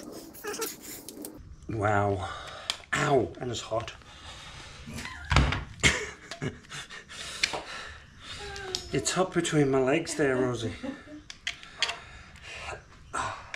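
A drill chuck clicks and rattles as it is handled.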